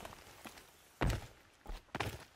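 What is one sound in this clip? A heavy thud of a landing after a jump.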